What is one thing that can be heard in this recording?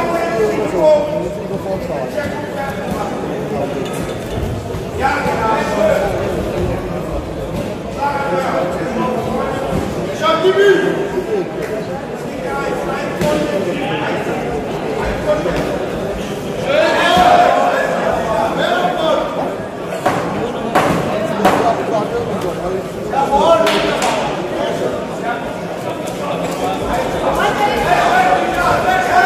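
Several men and women shout and cheer loudly in an echoing hall.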